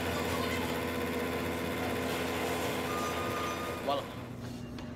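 A microwave oven hums steadily.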